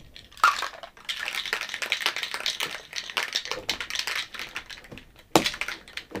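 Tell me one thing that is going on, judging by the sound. Ice rattles inside a cocktail shaker being shaken hard.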